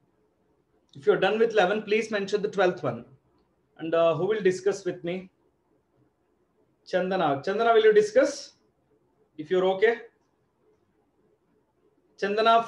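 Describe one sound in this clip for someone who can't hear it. A man speaks calmly and clearly close to a microphone, in short phrases with pauses.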